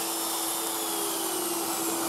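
A wood router whirs as it cuts into wood.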